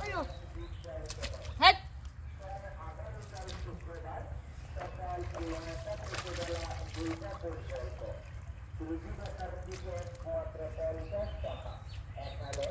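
Hands squelch and scoop through wet mud.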